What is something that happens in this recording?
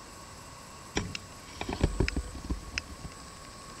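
Knocks and thuds sound from a horse trailer.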